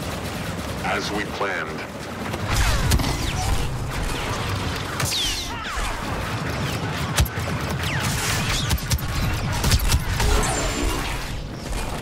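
Blaster shots crackle and zap in rapid bursts.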